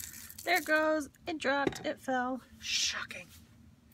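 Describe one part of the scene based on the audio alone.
A glass jar knocks down onto a table.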